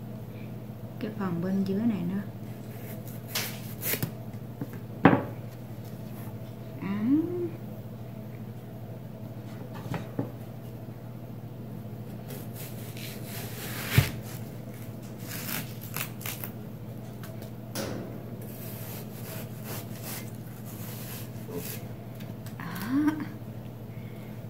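A young woman speaks briefly and calmly, close by.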